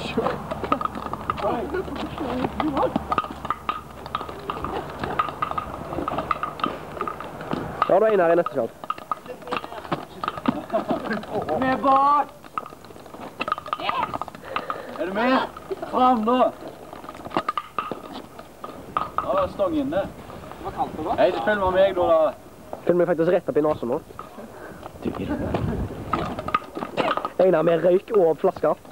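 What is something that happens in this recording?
Young men talk and shout with animation outdoors, close by.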